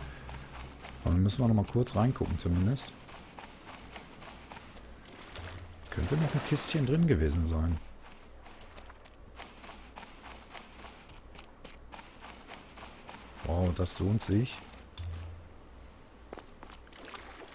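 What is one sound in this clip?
Small waves lap gently at a shore.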